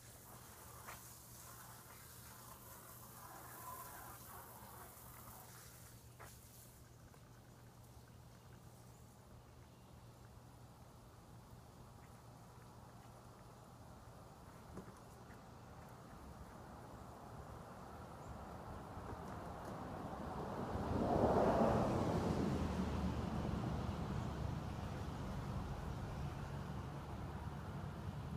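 A lawn mower engine hums steadily nearby, growing louder as it comes closer.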